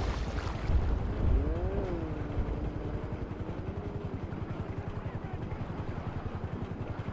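Muffled underwater swimming strokes pulse steadily.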